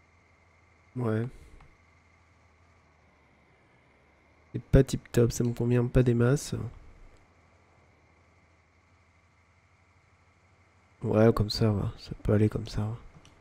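A young man talks calmly and close to a microphone, in short bursts.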